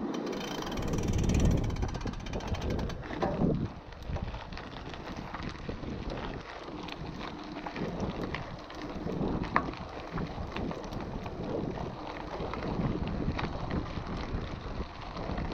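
Bicycle tyres crunch on gravel.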